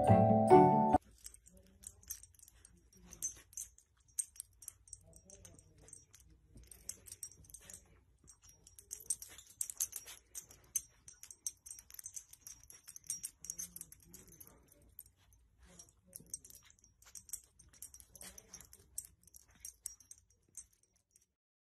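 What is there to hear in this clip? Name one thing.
A dog snuffles and rustles a soft blanket close by.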